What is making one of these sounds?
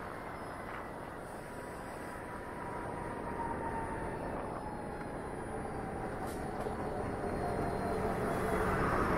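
A motorcycle engine hums and rises in pitch as it speeds up.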